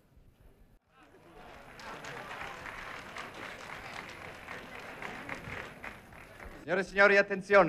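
An audience applauds and murmurs in a large hall.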